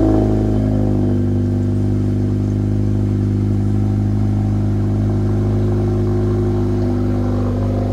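A car engine idles with a deep, steady rumble close by.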